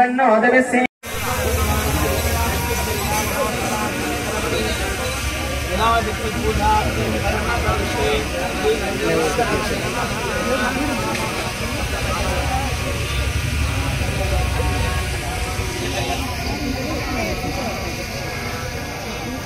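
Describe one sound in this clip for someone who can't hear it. A crowd of men talks outdoors.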